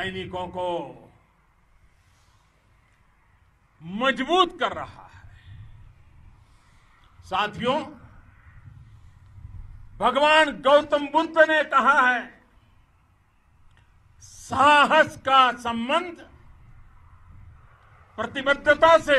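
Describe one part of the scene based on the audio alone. An elderly man speaks forcefully into a microphone outdoors, in bursts with pauses.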